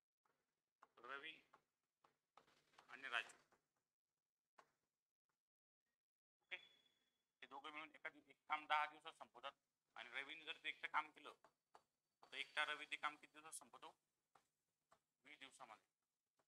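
A man explains calmly into a microphone, pausing between phrases.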